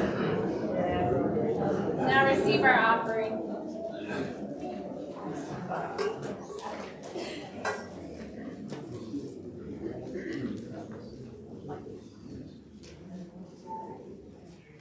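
A woman speaks in an echoing room.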